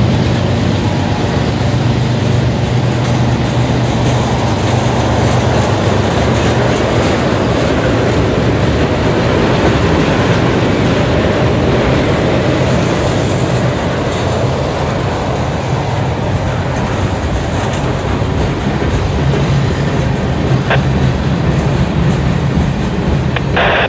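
Freight car wheels clack over rail joints.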